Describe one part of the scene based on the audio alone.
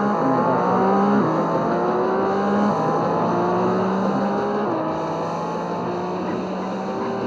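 A sports car engine revs higher and higher as it speeds up, dropping in pitch at each gear change.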